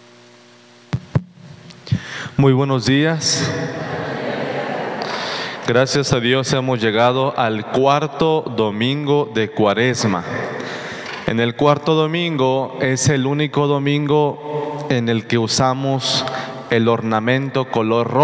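A man sings into a microphone in an echoing hall.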